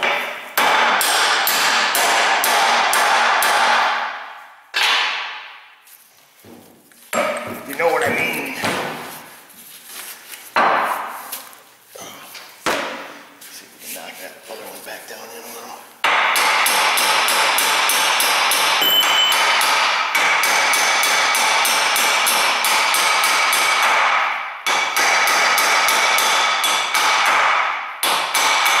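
A hammer strikes metal in quick, ringing blows.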